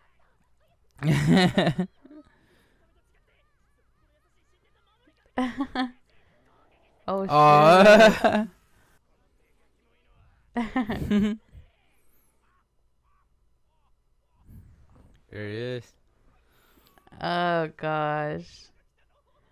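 A young man talks and laughs close to a microphone.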